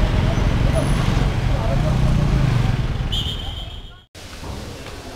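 Street traffic rumbles and hums outdoors.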